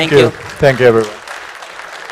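A man speaks briefly through a microphone in a large echoing hall.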